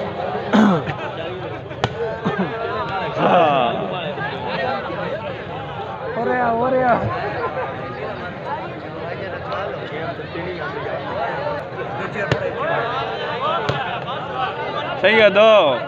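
A large outdoor crowd talks and shouts.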